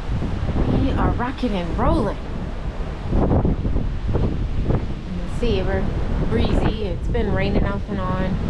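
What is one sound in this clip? Sea water churns and rushes below.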